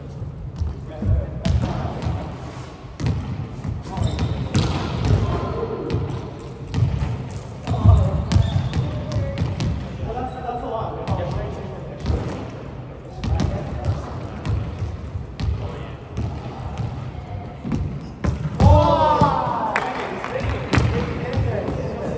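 A volleyball is struck by hands in a large echoing gym.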